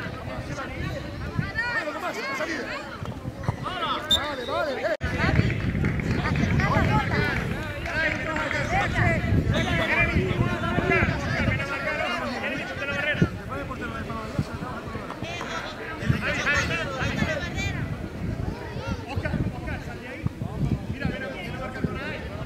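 Adult spectators chatter and call out nearby.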